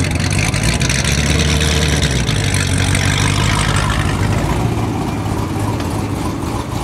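A sports car engine idles close by with a deep, loud, steady rumble.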